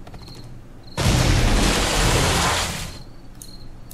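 A tree cracks and crashes to the ground.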